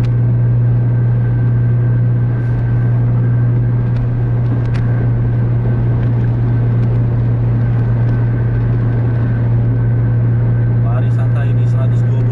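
A car engine hums steadily at speed, heard from inside the car.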